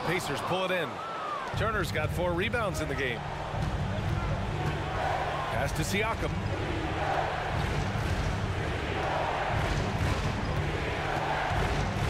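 A large crowd murmurs and cheers in an arena.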